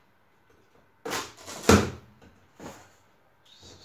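A cardboard box thumps and rustles as it is handled.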